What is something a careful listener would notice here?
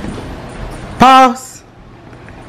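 A young woman lets out a loud, short shout.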